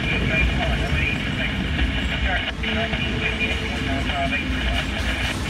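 Metal wheels squeal on the rails.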